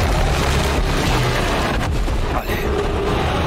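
A monster growls and roars loudly.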